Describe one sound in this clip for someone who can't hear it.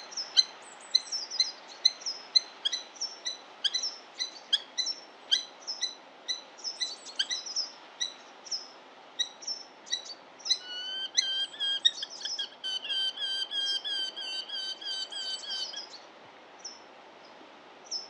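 A falcon gives sharp, rapid, high-pitched calls, then a quicker chattering series.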